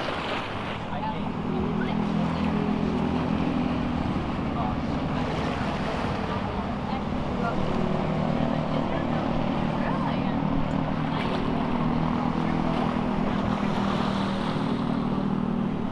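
A motorboat engine hums steadily over the water.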